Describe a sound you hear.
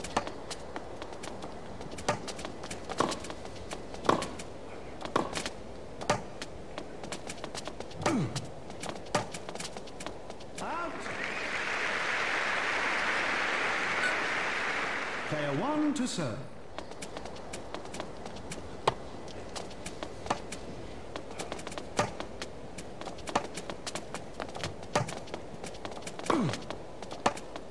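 Tennis rackets strike a ball in a rally.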